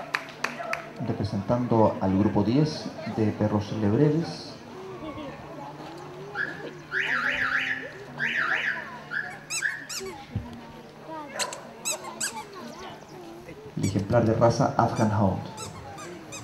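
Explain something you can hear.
A man talks nearby, outdoors.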